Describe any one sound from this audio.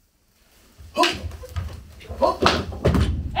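Feet stamp on a wooden floor.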